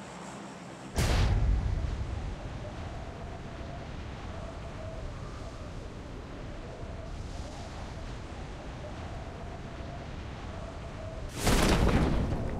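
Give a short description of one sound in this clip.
Wind rushes loudly past during a fall.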